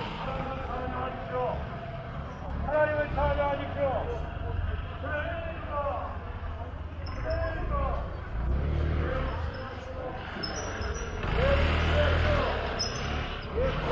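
A motor scooter hums past.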